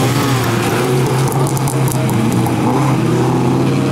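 Tyres skid and crunch on loose gravel.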